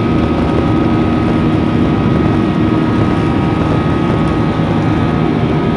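Wheels rumble over the runway.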